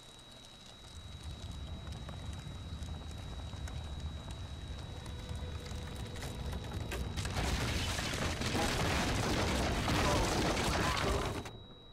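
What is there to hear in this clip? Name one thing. A fire roars loudly.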